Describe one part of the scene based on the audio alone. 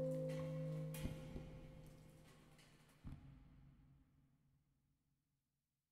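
A horn holds a long note that ends and fades away into silence.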